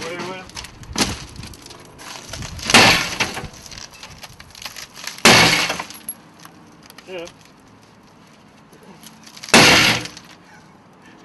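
A sledgehammer bangs hard against a wooden door.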